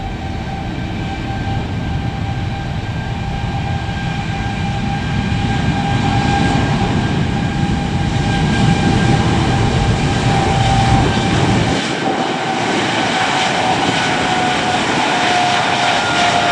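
Jet engines roar loudly and steadily with a high whine as an airliner rolls past close by.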